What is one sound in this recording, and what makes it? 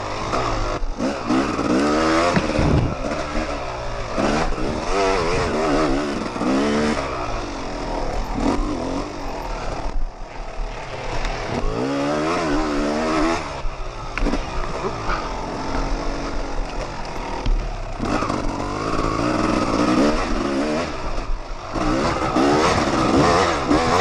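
Knobby tyres churn over a bumpy dirt trail.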